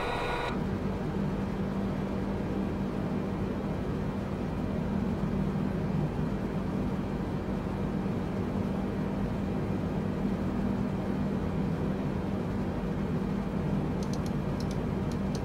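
A jet airliner's engines and cockpit hum with a steady low drone.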